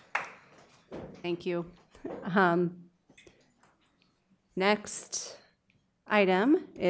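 A woman speaks calmly through a microphone in short phrases.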